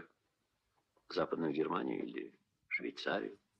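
A second man speaks calmly to someone nearby.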